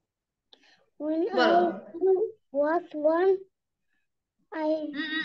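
A young girl recites slowly and clearly, heard through an online call.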